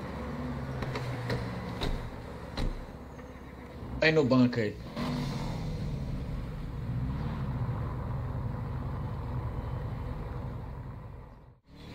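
A car engine rumbles as a car pulls away.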